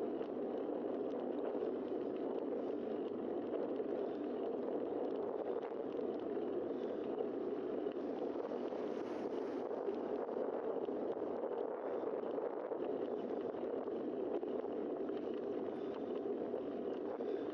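Tyres roll on smooth road surface.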